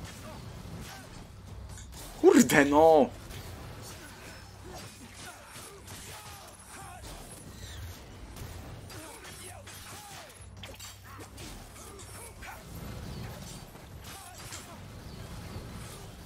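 Lightning crackles and booms.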